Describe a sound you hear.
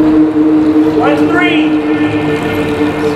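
A racing bicycle whirs past on a wooden track.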